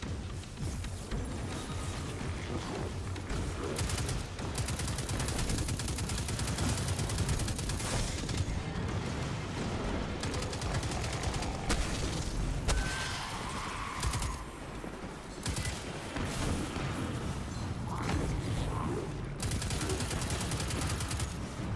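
Rapid gunfire bursts out in quick runs of shots.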